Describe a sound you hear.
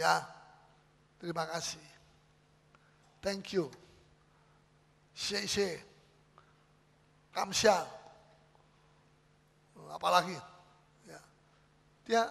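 A middle-aged man speaks with animation in short bursts, heard through a microphone in an echoing hall.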